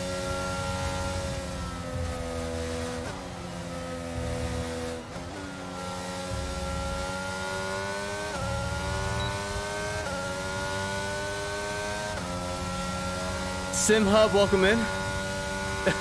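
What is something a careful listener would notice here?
A racing car engine whines steadily, dropping in pitch as it slows and climbing again with each gear change.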